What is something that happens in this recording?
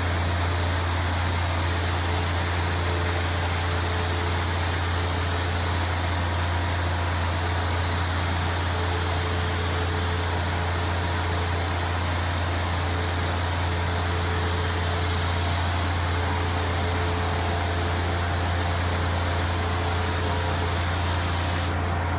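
A spray gun hisses steadily as it sprays finish.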